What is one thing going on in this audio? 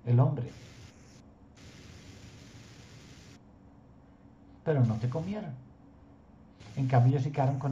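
An older man speaks calmly through an online call, in short bursts.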